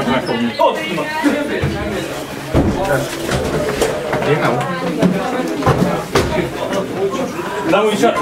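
Footsteps shuffle and knock on a hard floor.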